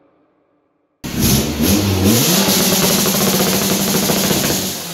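A car engine revs loudly and roars through its exhaust, then settles to a steady drone.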